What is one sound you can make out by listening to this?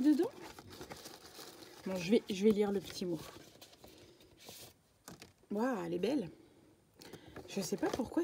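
Paper rustles and card slides close by.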